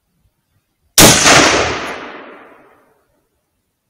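A rifle shot cracks loudly outdoors and echoes away.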